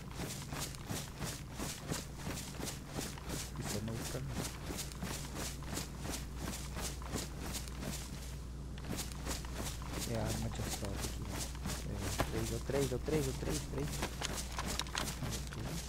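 Quick footsteps run and rustle through undergrowth.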